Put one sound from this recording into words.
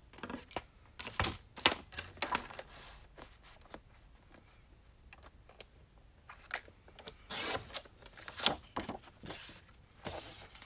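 Paper slides and rustles across a hard surface.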